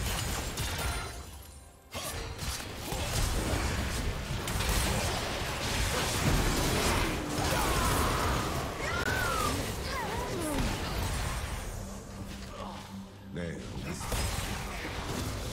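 Magic spells burst, crackle and clash in a fast fight.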